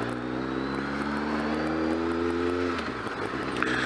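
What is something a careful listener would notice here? A motorcycle engine hums steadily, then drops away as the rider eases off.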